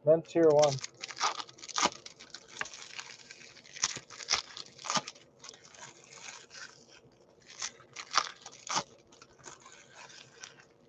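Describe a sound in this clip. A foil card pack crinkles and rustles in hands.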